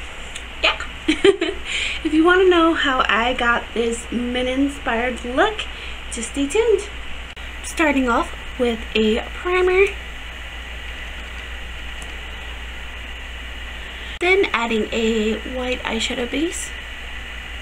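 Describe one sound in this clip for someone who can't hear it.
A young woman talks cheerfully and close to the microphone.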